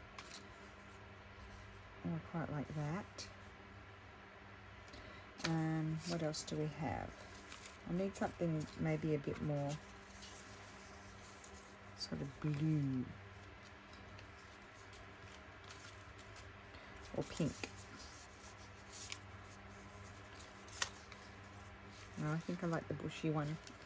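Paper cutouts rustle softly as they are handled.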